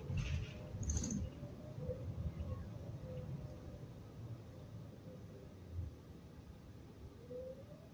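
A bus body rattles and creaks as it moves.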